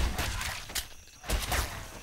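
A pistol is reloaded with metallic clicks.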